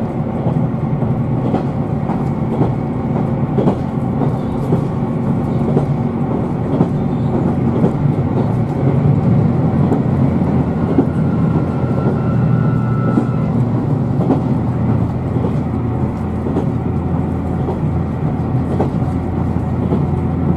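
A train rumbles steadily along the tracks, heard from inside the carriage.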